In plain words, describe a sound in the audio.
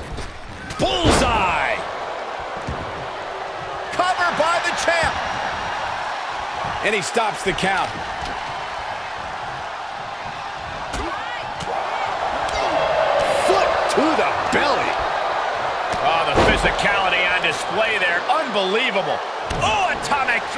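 Heavy thuds of bodies slamming onto a wrestling ring.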